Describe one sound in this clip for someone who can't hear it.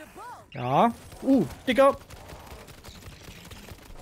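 Gunshots crack rapidly.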